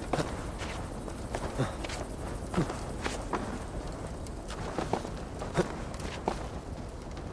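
Hands and boots knock on wood while climbing.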